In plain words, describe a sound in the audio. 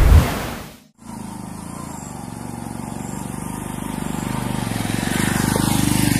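A motorcycle engine approaches on a rocky dirt track.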